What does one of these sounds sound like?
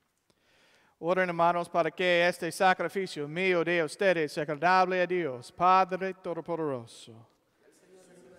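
A man chants in a steady sung voice through a microphone in a large echoing hall.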